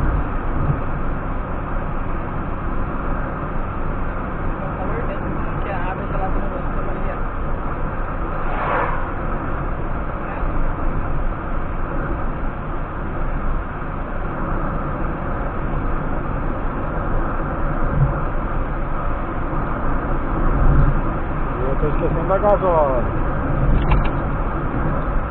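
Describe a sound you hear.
A car drives steadily along a road, heard from inside.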